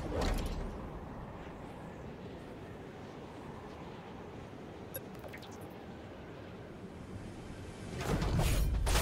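Wind rushes softly during a long glide.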